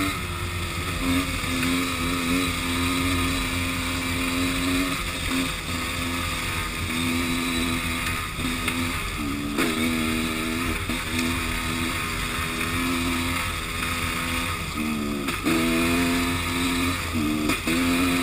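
A motorcycle engine drones and revs up and down close by.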